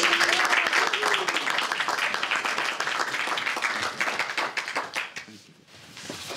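Several people applaud.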